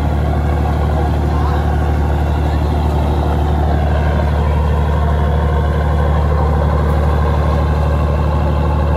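Water rushes and splashes along a boat's hull.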